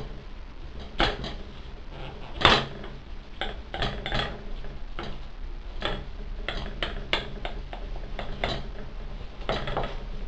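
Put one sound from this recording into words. A knife taps against a glass dish.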